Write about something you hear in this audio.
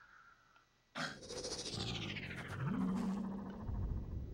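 A large blade whooshes through the air.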